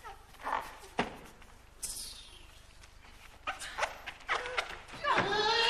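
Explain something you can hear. Shoes knock and tap on a wooden stage floor.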